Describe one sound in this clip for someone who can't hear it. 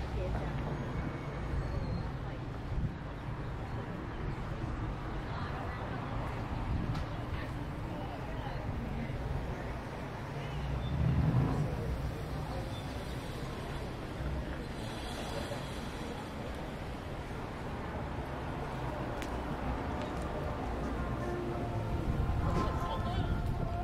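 Light traffic rumbles steadily on a nearby street outdoors.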